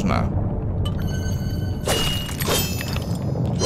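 A bright magical chime rings.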